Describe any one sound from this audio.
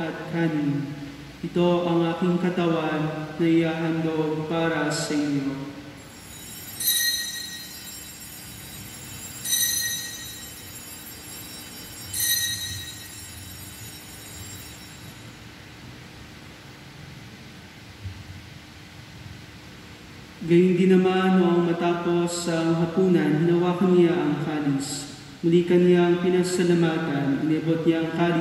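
A man chants in a sung voice through a microphone in a large echoing hall.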